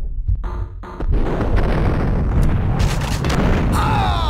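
A pump-action shotgun fires with a loud blast.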